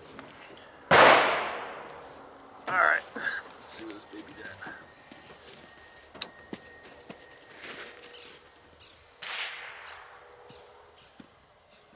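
A large rifle fires loud shots outdoors, each followed by a long rolling echo.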